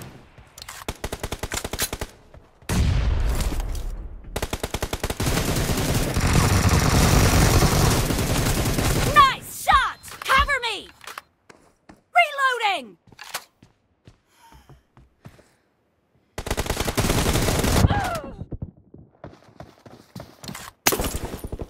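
Rapid gunfire rattles in short and long bursts.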